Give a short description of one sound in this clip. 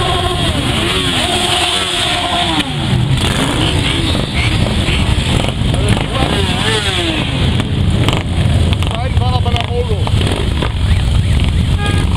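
Many motorcycle engines rumble loudly as a long line of bikes rides past close by.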